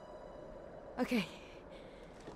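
A young woman speaks a short word.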